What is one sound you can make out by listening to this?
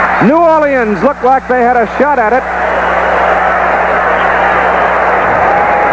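A large crowd roars and cheers outdoors.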